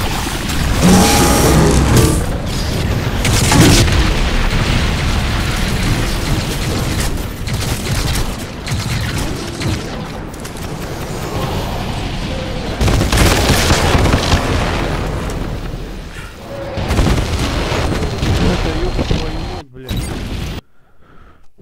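Gunfire and explosions crackle in a video game.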